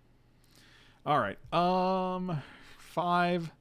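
A man speaks loudly with animation, drawing out his words, close to a microphone.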